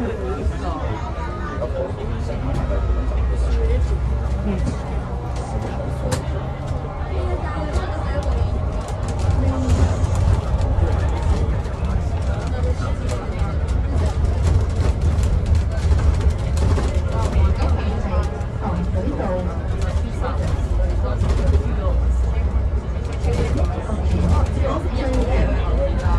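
Young men talk quietly nearby.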